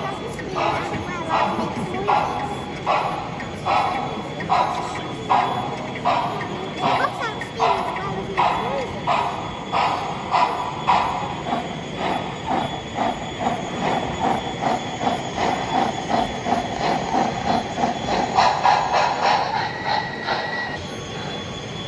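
A model steam locomotive chuffs in rhythmic puffs that speed up.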